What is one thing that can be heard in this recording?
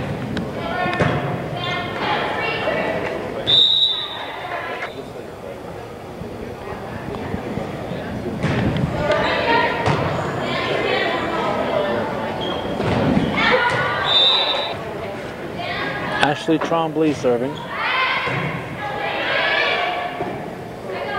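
A crowd in a large echoing gym cheers and shouts.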